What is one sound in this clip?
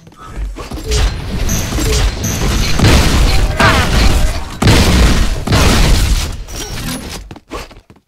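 Guns fire in rapid loud bursts.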